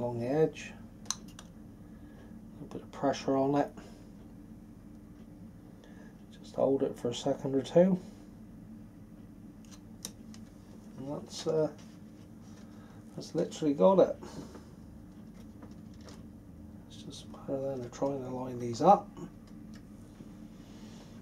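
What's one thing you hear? Light plastic parts click and tap softly as they are fitted together.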